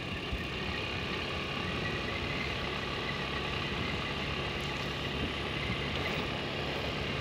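Wind rushes steadily past the rider.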